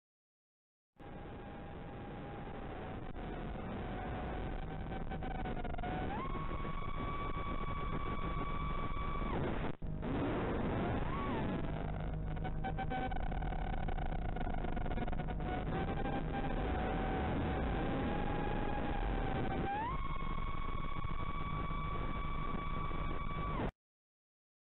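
A small drone's electric motors whine loudly, jumping higher in pitch as the drone speeds up.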